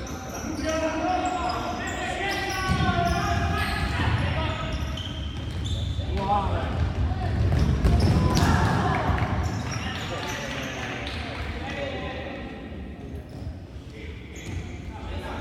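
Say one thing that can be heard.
Spectators nearby talk and call out.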